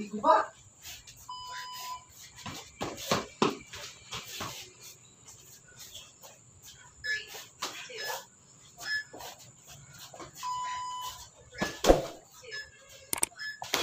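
Boxing gloves thud on pads in quick bursts.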